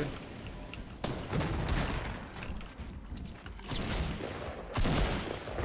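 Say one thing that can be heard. Wooden walls clatter into place in a video game.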